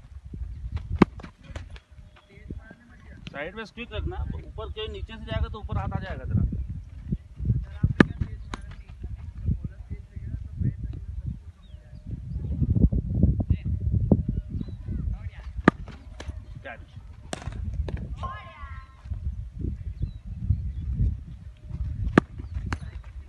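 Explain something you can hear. A cricket bat sharply strikes a ball several times.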